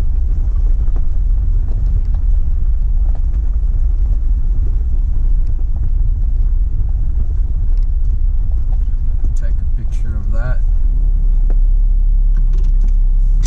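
Tyres crunch over a gravel road.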